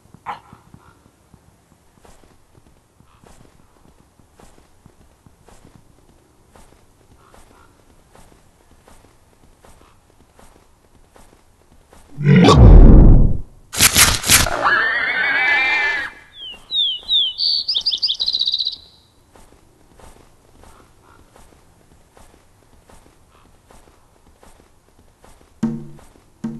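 A walrus flops heavily across crunchy snow.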